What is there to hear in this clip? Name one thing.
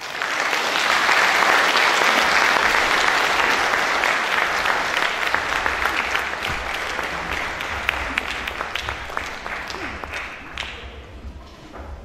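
An audience applauds loudly in an echoing hall, and the applause slowly fades.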